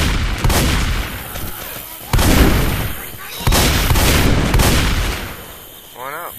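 A shotgun fires loud, booming blasts that ring out.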